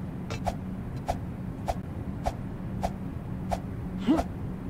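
Footsteps tap in a quick, even rhythm on wooden boards.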